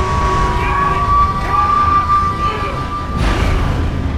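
A man shouts urgently.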